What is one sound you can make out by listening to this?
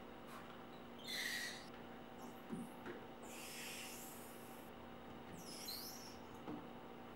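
A spray bottle hisses in short bursts.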